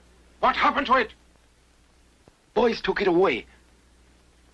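A man speaks in short, tense bursts.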